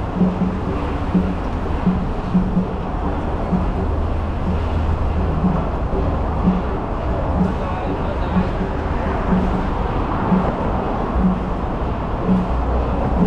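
Traffic rumbles steadily along a busy road nearby.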